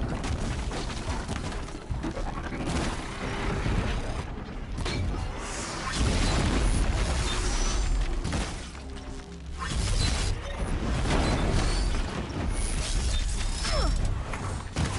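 Machines clank and screech.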